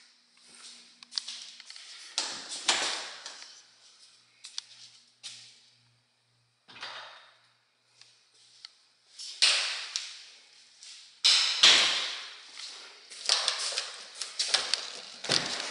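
Doors creak open and thud shut nearby.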